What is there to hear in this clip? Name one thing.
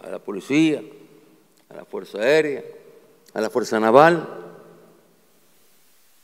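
A man speaks forcefully through a microphone.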